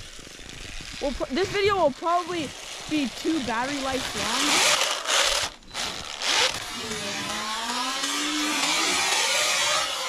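A small toy snowmobile's electric motor whines, rising and falling in pitch as it revs.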